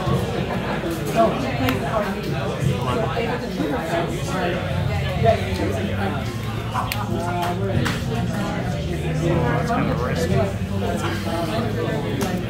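Playing cards slide and tap on a cloth mat.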